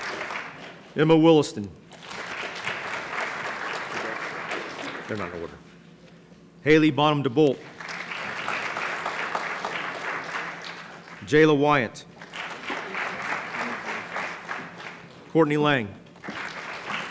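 A man reads out loud through a microphone in a large hall.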